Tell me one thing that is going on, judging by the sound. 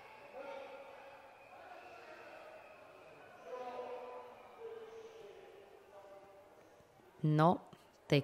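A crowd murmurs softly in a large hall.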